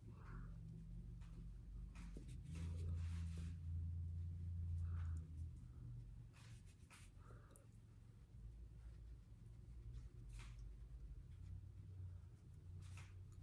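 A makeup sponge pats softly against skin.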